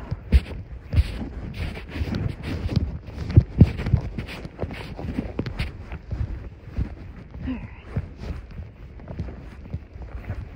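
Cloth rubs and bumps against the microphone, rustling loudly up close.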